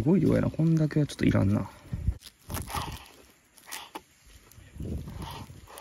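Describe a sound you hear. A knife chops fresh herbs on a wooden board.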